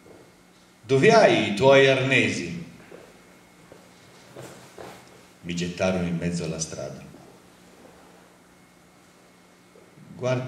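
A man speaks slowly into a microphone, heard through a loudspeaker in an echoing hall.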